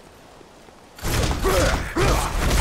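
A heavy weapon whooshes through the air.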